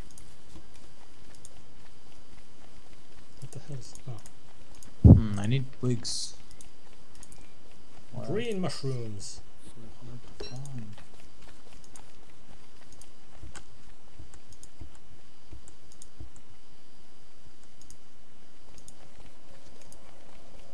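A figure's footsteps patter softly on the ground.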